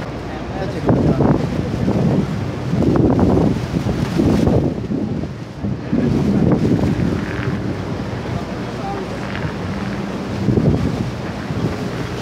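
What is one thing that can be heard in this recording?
A boat engine rumbles steadily.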